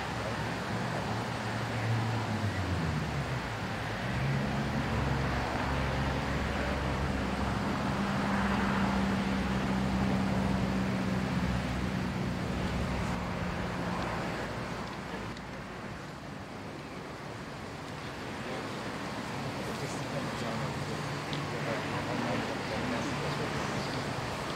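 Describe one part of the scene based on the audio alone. A man chants a slow prayer in a low voice.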